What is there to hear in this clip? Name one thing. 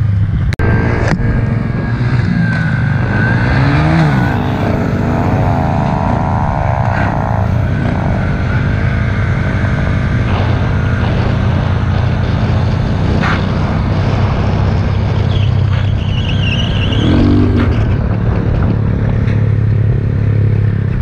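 A motorcycle engine drones close by and revs up now and then.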